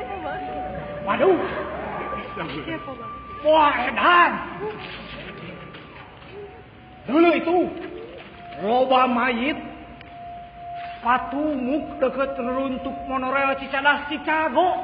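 Young women sing and call out loudly in an echoing hall.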